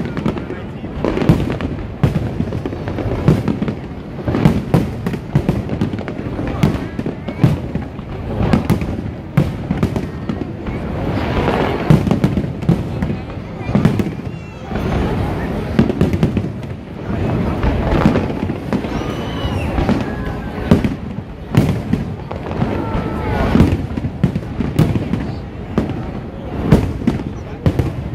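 Fireworks bang and crackle overhead, one burst after another.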